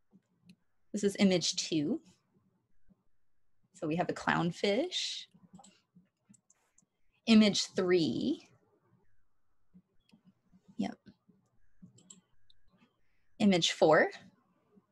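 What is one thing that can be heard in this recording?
A young woman speaks calmly over an online call, in short phrases with pauses.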